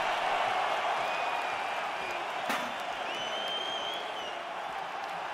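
A spectator in a crowd whistles loudly.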